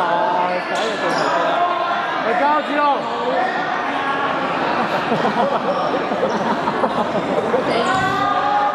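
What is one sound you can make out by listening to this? Teenage boys shout and call out across a large echoing hall.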